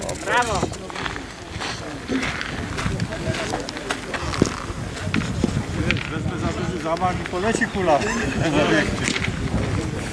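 A man talks outdoors.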